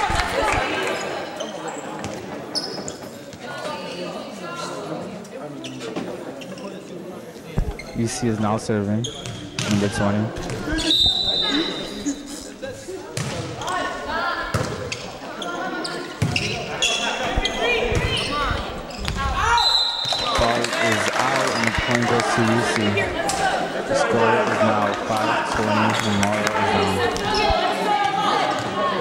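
Voices of a crowd of girls and spectators chatter and call out in a large echoing gym.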